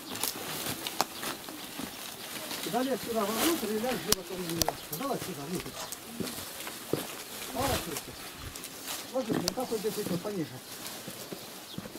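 Dry stalks rustle and crack as they are moved.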